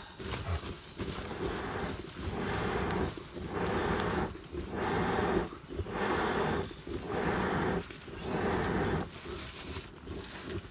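A wood fire crackles softly.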